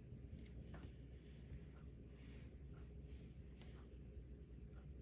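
Yarn rustles softly as it is unwound.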